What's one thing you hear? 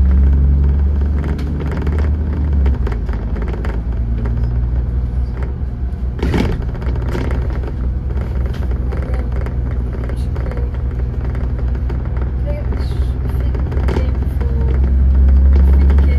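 A bus body rattles and clunks as it rolls over the road.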